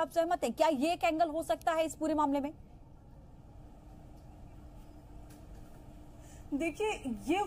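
A woman speaks quickly and with animation through a microphone.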